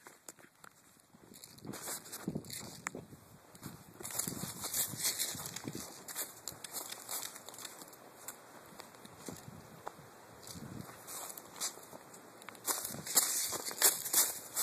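Wind gusts outdoors, rustling through tree leaves.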